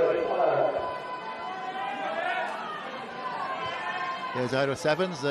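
A crowd of spectators murmurs and calls out in the open air.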